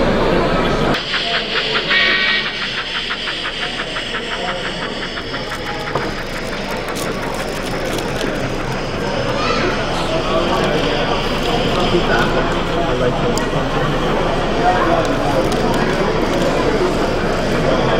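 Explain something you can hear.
A small model train clatters and rattles along its track.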